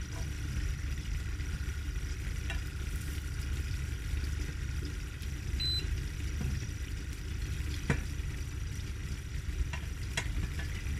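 Butter sizzles softly in a hot pan.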